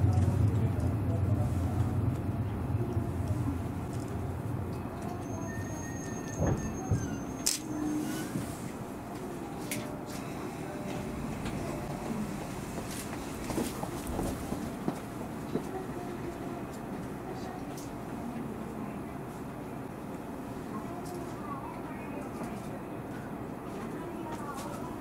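A train rumbles steadily and slows down.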